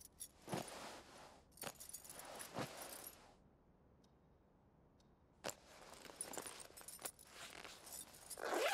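A bag rustles as it is rummaged through.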